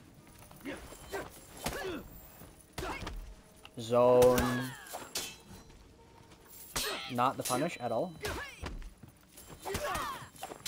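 Metal swords clash and ring in quick blows.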